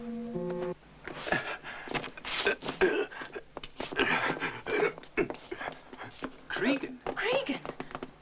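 A man pants and grunts with strain close by.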